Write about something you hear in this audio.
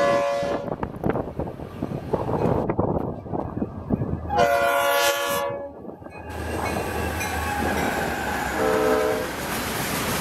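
A train horn blares loudly several times.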